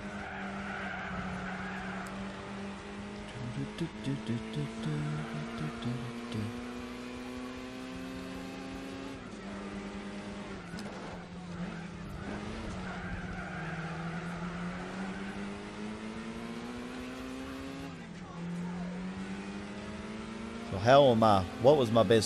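A car engine revs up through the gears and drops in pitch at each gear change.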